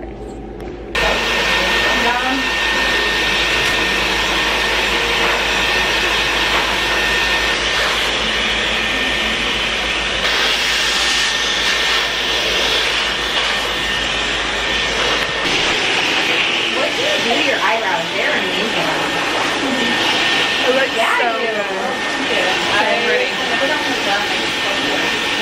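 A hair dryer blows with a steady roar.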